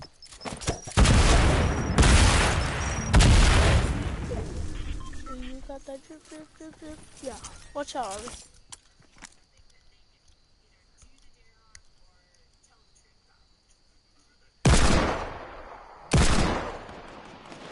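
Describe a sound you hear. Gunshots bang loudly in quick bursts.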